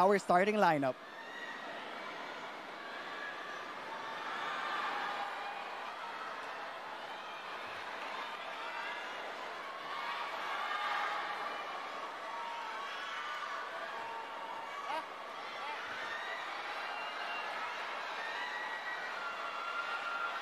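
A large crowd chatters and murmurs in a big echoing arena.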